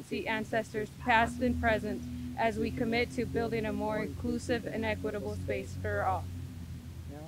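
A young woman speaks calmly into a microphone, heard through a loudspeaker.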